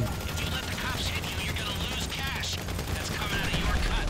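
A helicopter's rotor thuds overhead.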